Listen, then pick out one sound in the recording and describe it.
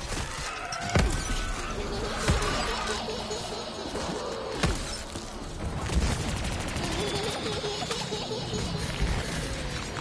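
A heavy gun fires in sharp, booming blasts.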